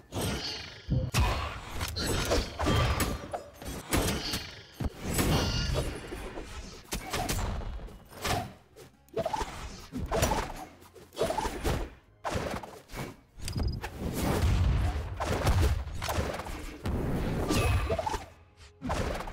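Game fighters' hits, whooshes and blasts burst in quick succession.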